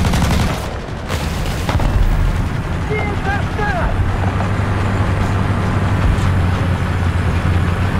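Metal tracks clatter and squeak over concrete.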